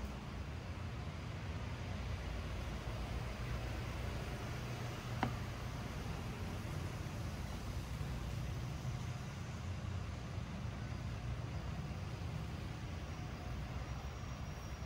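A bus engine idles with a low rumble nearby.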